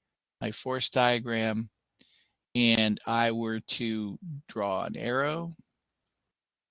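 A middle-aged man speaks calmly into a headset microphone.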